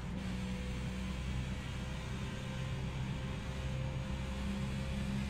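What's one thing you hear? Tyres hum on the track.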